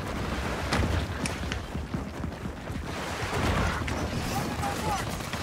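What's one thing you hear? Heavy boots thud on paving stones at a running pace.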